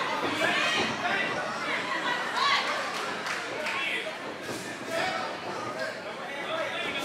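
A crowd in a large echoing hall shouts and cheers.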